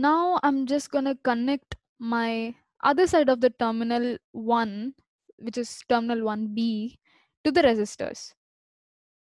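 A young person speaks calmly and closely into a microphone.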